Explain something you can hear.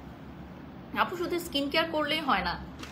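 A young woman speaks expressively close to a microphone.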